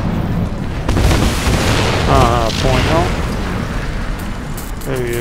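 An explosion booms and debris rattles.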